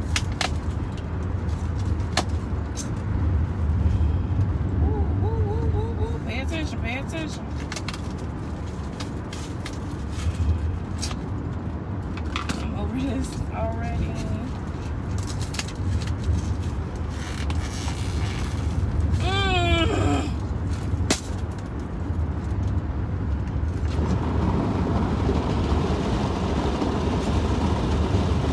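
A car's engine and tyres rumble steadily while driving.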